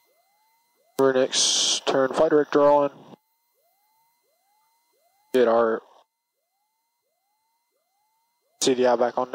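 A young man speaks in short bursts through a headset radio.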